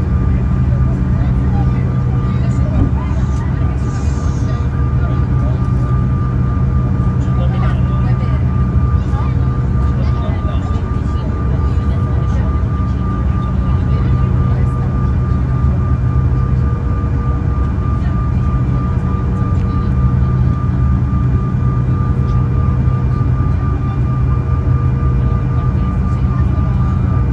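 Aircraft wheels rumble over a wet runway.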